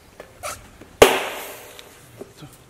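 A bicycle tyre bead snaps onto the rim with a sharp pop.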